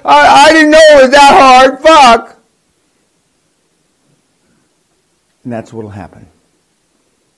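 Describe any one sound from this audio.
An elderly man speaks loudly and with animation through a microphone.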